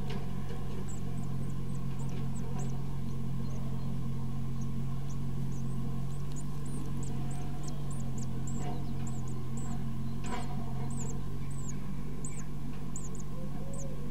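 Nestling birds cheep in short, high-pitched bursts.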